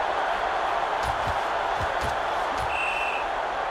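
Football players collide with dull thuds.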